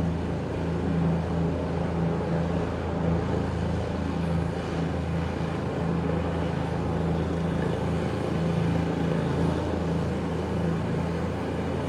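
A helicopter hovers nearby with a steady, loud chopping roar.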